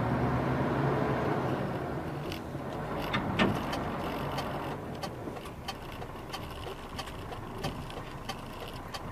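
A car engine rumbles low and steadily, heard from inside the car.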